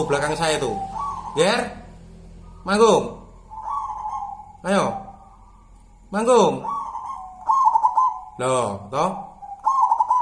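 A dove coos loudly and repeatedly, close by.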